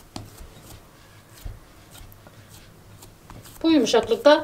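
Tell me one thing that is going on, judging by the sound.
Hands knead soft dough with quiet squishing sounds.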